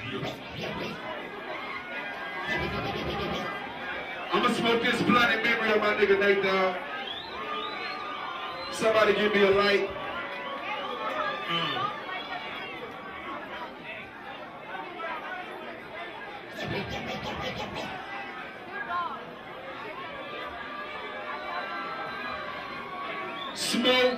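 A male rapper raps loudly through a microphone.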